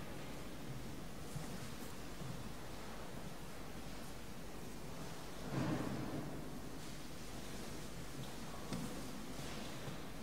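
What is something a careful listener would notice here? Footsteps echo on a stone floor in a large, reverberant hall.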